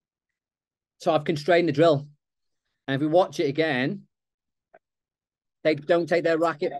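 A man speaks calmly into a microphone, heard through an online call.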